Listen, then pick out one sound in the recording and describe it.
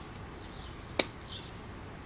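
A stack of cards taps down onto a soft surface.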